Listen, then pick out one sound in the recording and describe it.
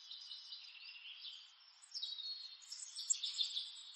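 Water pours from a bottle into a cup.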